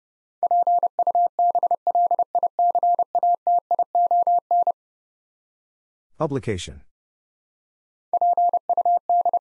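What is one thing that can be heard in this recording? Morse code beeps rapidly in a steady high tone.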